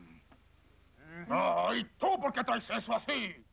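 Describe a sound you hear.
A man speaks loudly with animation in a cartoon voice.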